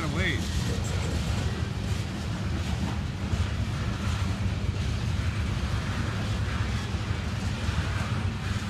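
A freight train rumbles past close by, its wheels clattering steadily over the rails.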